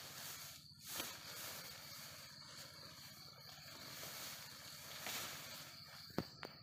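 Tent fabric rustles and flaps as a pop-up tent springs open.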